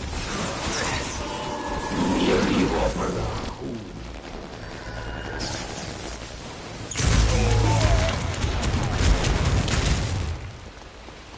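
Energy blasts roar and crackle in loud bursts.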